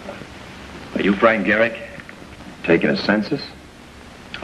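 A man speaks in a tense voice nearby.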